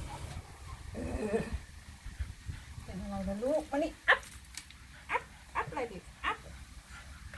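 A puppy whimpers and whines close by.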